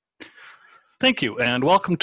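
An elderly man speaks calmly through a headset microphone on an online call.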